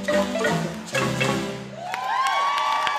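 Marimbas play a lively tune.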